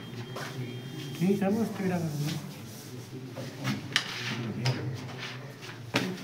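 Wooden carrom pieces rattle and slide as hands shuffle them across a board.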